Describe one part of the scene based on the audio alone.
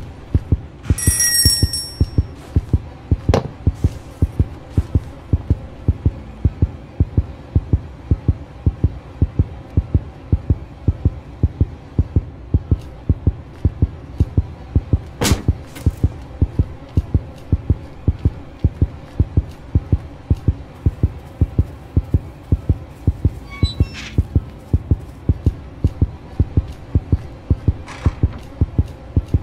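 Footsteps thud on a hard floor at a walking pace.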